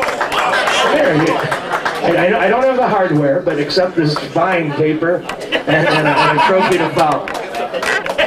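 A man talks loudly close by over the crowd.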